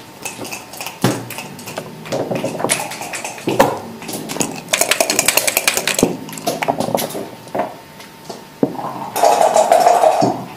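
Game pieces click against a wooden board as they are moved.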